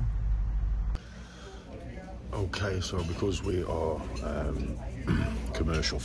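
A man talks calmly and closely to the microphone.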